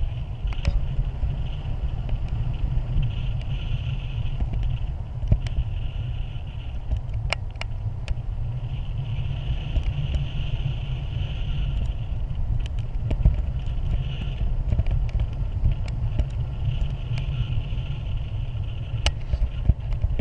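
Strong wind roars and buffets against a microphone.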